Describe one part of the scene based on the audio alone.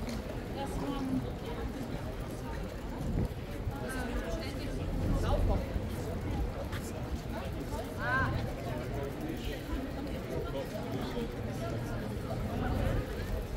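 Footsteps patter on paving stones.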